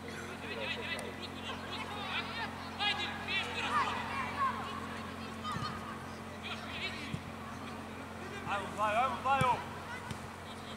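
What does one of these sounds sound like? Young players shout and call out to each other outdoors.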